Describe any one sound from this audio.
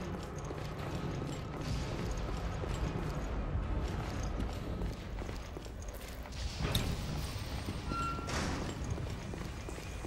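Footsteps ring on a metal floor.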